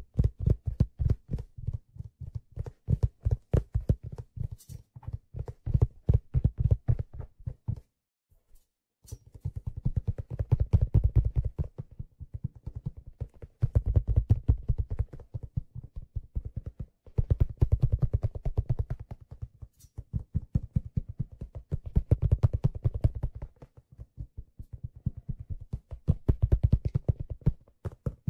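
Fingers tap and drum rapidly on a hollow object close to the microphone.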